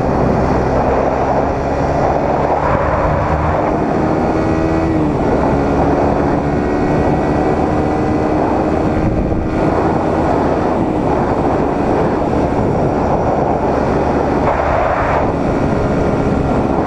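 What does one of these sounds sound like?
A sport motorcycle engine revs hard and shifts up through the gears.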